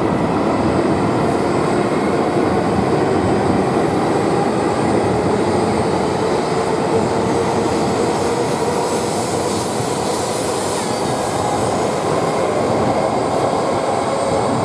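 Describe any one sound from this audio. A high-speed train rushes past with a loud steady roar.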